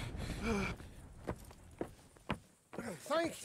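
Footsteps knock on wooden planks.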